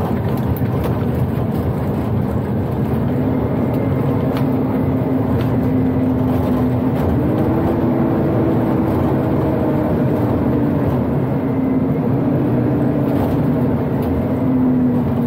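A truck cab rattles and clicks over bumps.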